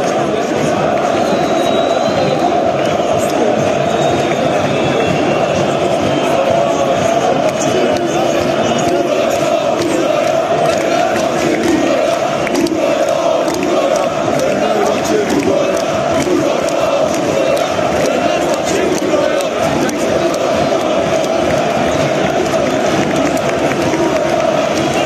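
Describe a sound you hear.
A huge stadium crowd chants and sings loudly in unison, echoing around the stands.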